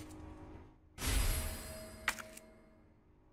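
A bright rustling chime sounds as an item is picked up.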